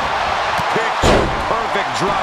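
A wrestler's body slams heavily onto the ring mat.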